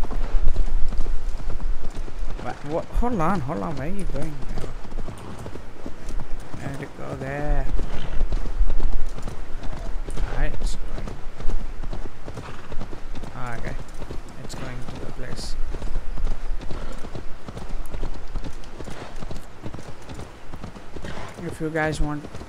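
A horse gallops, its hooves pounding on a dirt path.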